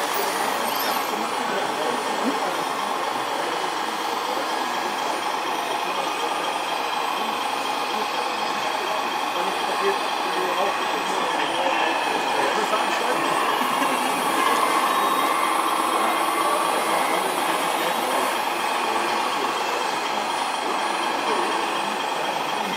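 Small electric motors whir as a model excavator moves its arm.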